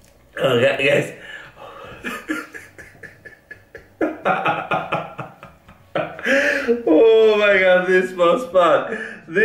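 A man laughs heartily close to a microphone.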